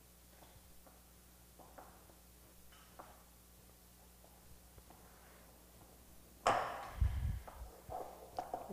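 Hands squish and knead soft dough in a glass bowl.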